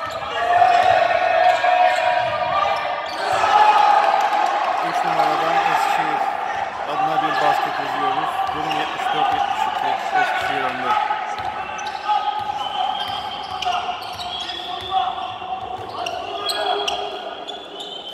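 Sneakers squeak sharply on a hardwood court in a large echoing hall.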